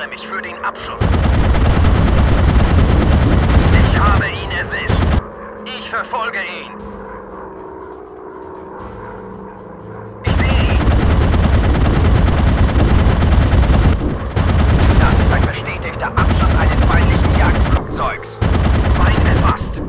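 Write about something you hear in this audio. Machine guns fire in long rapid bursts.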